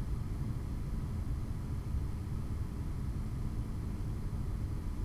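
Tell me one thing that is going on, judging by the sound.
The cooling fans of a computer's liquid cooler radiator whir steadily.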